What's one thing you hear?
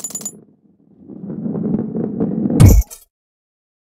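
A ball rolls along with a low rumble.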